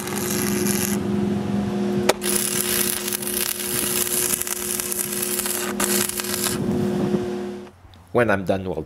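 An arc welder crackles and sizzles steadily.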